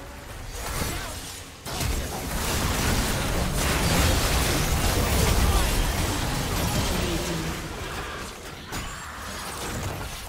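Magic blasts and spell effects crash and whoosh in a hectic game battle.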